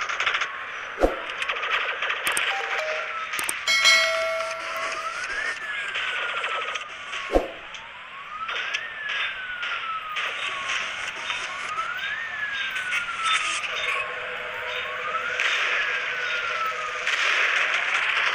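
Explosions boom with sudden loud bursts.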